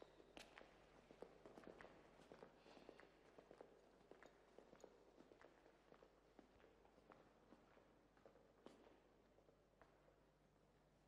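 Footsteps tap on a stone floor in a large echoing hall.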